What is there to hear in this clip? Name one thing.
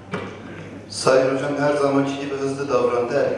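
A man speaks into a microphone, heard over loudspeakers in a large echoing hall.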